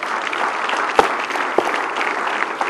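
A cadet stamps his boots on a carpet.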